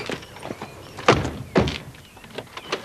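Car doors slam shut.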